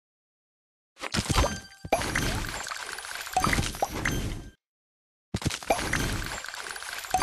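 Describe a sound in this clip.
Game candies pop and chime brightly as they are matched and cleared.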